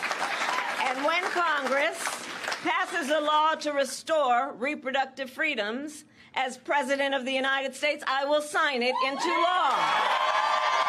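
A woman speaks loudly and with animation into a microphone.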